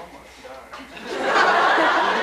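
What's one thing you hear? A group of young people cheer loudly.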